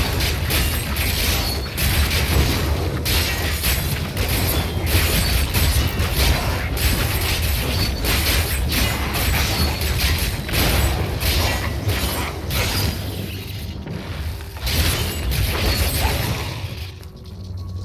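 Game spells crackle and blast in rapid bursts.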